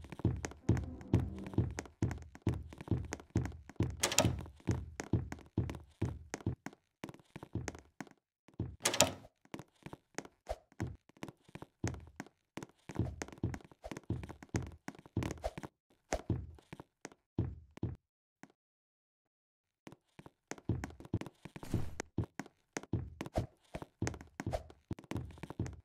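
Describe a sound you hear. Quick footsteps thud steadily on a hard floor.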